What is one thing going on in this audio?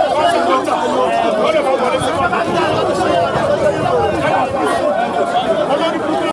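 A crowd of men talks and shouts over one another nearby, outdoors.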